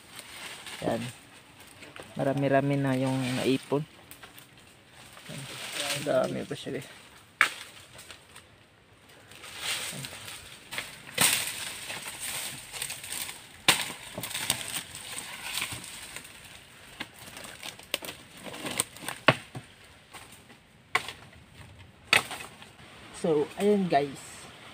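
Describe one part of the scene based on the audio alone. Dry leaves and twigs crunch underfoot as a man climbs over rocks.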